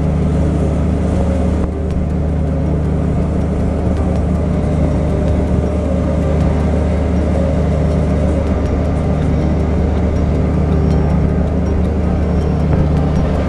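A ship's engine hums with a steady low drone.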